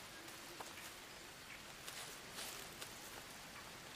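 Water trickles and splashes in a stream.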